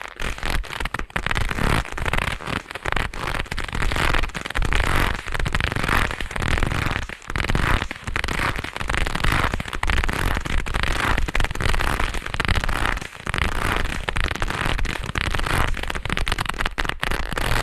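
Gloved hands rub and crinkle something soft very close to the microphone.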